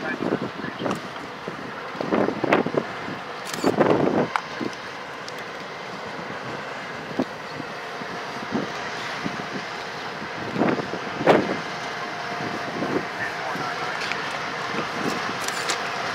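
Train wheels clatter and knock over the rail joints.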